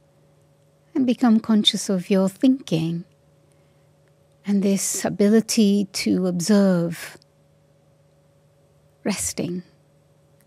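An elderly woman speaks calmly and slowly into a microphone, with pauses.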